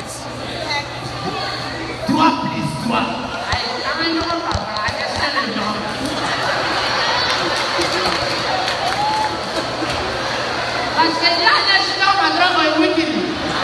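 A man speaks animatedly through a microphone over loudspeakers in a large echoing hall.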